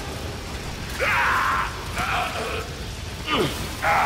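A sci-fi energy weapon fires in loud crackling bursts.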